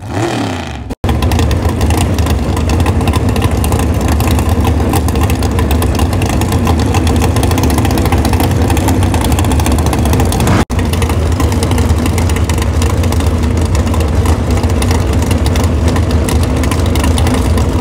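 A race car engine idles with a loud, rough, steady rumble.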